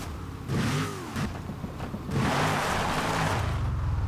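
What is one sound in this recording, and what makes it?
Tyres screech as a car slides.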